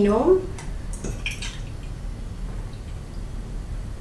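Milk pours into a glass.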